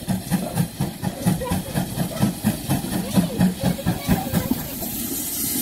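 A steam locomotive chuffs in a steady rhythm as it pulls in.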